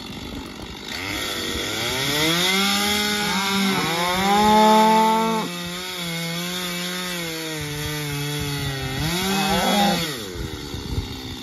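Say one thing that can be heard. A small engine starts up, revs and drones, rising and falling in pitch.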